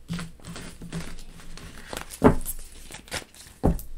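Playing cards slide and rustle as a deck is gathered up.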